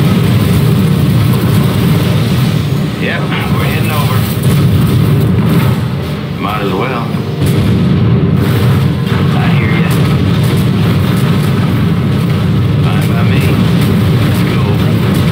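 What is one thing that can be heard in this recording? Jet aircraft engines roar steadily.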